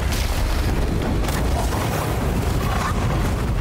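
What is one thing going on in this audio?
Fire roars and crackles loudly.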